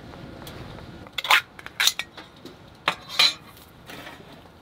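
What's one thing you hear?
A can lid is peeled open with a metallic scrape.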